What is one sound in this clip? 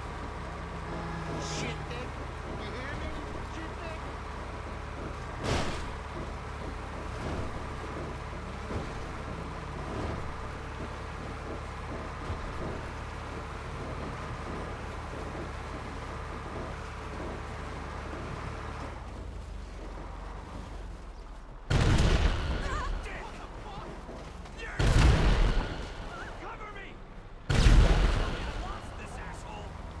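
A heavy tank engine rumbles low and steady.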